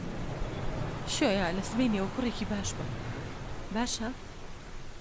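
A young woman speaks softly and calmly.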